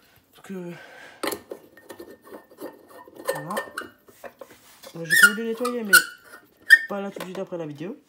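A glass bulb squeaks and grinds as it is screwed into a socket.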